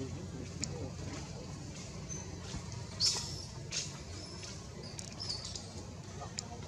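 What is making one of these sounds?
A monkey gives short, high squeaks close by.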